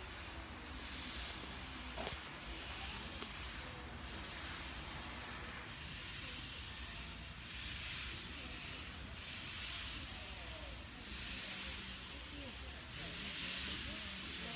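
A steam locomotive chuffs nearby, with rhythmic bursts of hissing steam.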